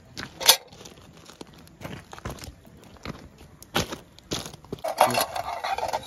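Footsteps crunch on pebbles.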